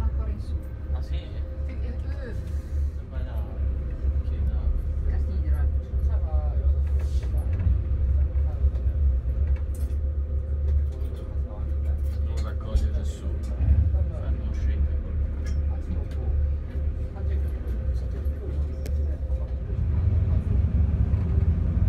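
A boat engine rumbles steadily, heard from inside the boat.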